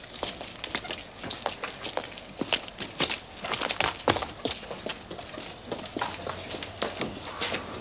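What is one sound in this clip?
Footsteps shuffle and tap on hard ground as several people walk.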